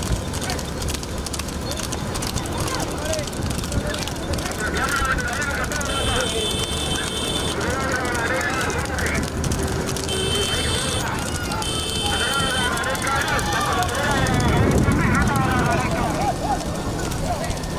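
Horses' hooves clatter quickly on a paved road.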